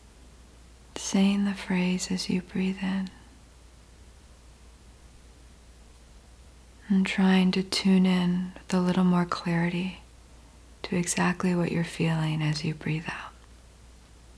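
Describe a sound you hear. A young woman speaks calmly and close to a microphone, in short phrases with pauses.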